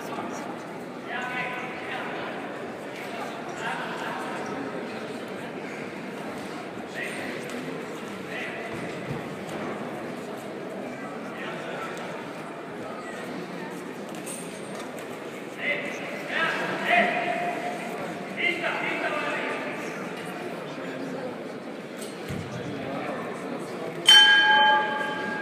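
Men and women talk and shout from a distance in a large echoing hall.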